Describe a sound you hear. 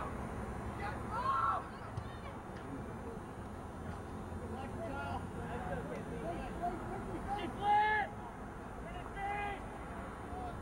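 Teenage boys shout to each other across an open field, heard from a distance.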